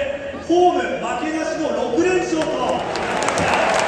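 A young man speaks calmly through a stadium loudspeaker, echoing widely.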